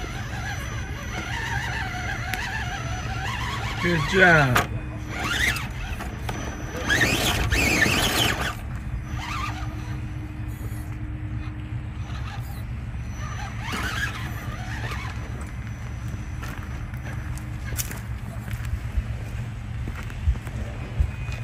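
A small electric motor whines as a toy truck crawls slowly over rough ground.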